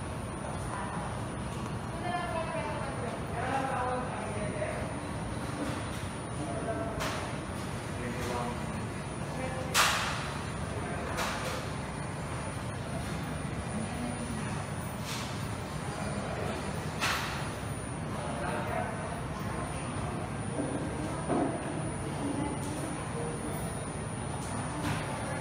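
People murmur and chat indistinctly in a busy, echoing room.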